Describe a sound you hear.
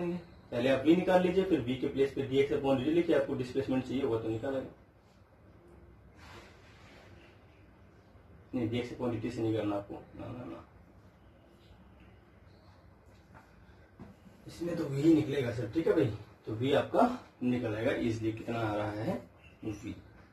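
A man speaks calmly and clearly close to a microphone, in bursts with pauses.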